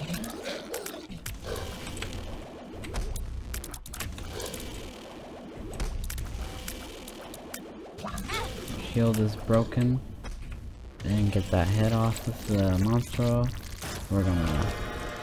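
Wet splats and pops from a video game sound over and over.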